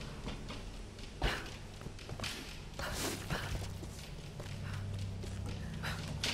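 Hands and feet clank on a metal ladder during a climb.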